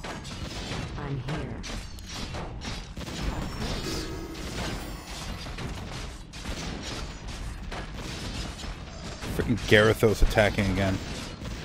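Magic spells crackle and whoosh in a battle.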